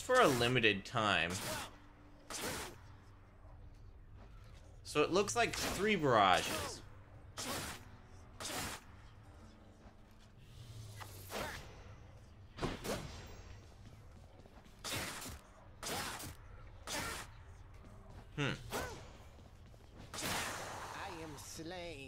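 Sharp blade strikes and whooshes land again and again.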